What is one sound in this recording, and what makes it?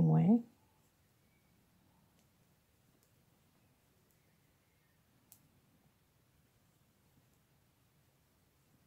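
A crochet hook clicks softly against yarn.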